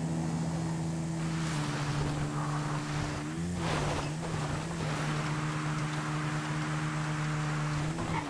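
A quad bike engine hums steadily at speed.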